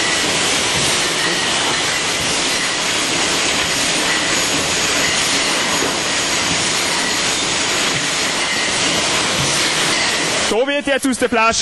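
A bottling machine hums and rattles steadily.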